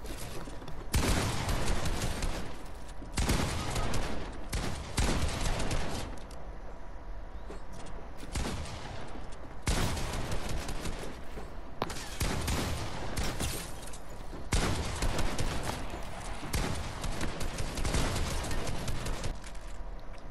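Shotgun blasts and rapid gunfire crack in bursts.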